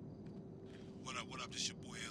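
A man calls out casually.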